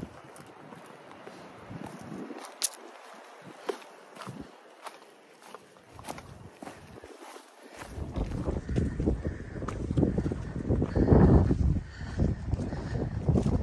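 Footsteps crunch on a rocky trail.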